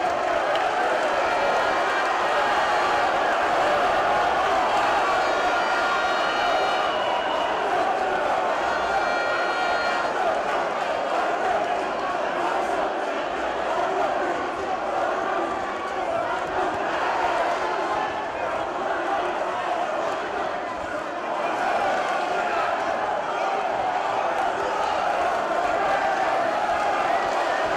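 A crowd cheers and roars in a large echoing hall.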